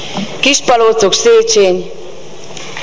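A woman sings into a microphone in a large hall.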